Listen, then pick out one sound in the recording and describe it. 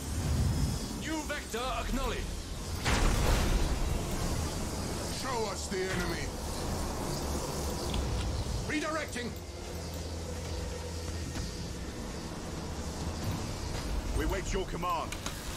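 A young man talks casually, close to a microphone.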